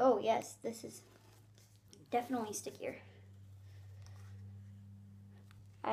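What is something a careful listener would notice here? Tape is pulled off a roll with a rasping tear.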